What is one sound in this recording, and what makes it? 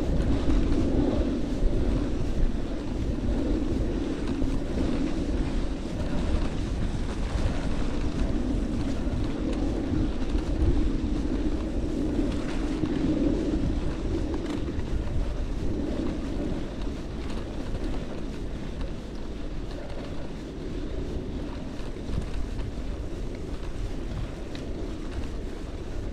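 Wind blusters loudly against the microphone outdoors.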